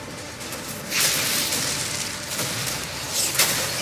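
A fiery explosion roars.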